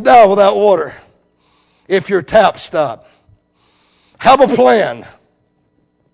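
A middle-aged man preaches with emphasis through a microphone, in short bursts.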